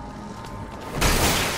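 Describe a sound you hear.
A metal door is smashed open with a loud crash.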